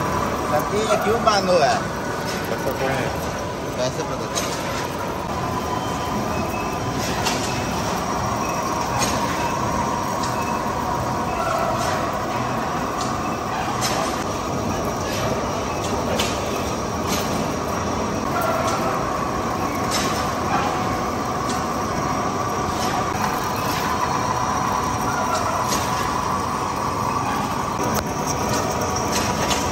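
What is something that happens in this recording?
A vertical lathe turns a steel workpiece as a cutting tool shaves it with a steady grinding whine.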